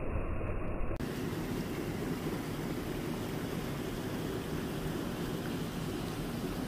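Water splashes and laps around bare feet.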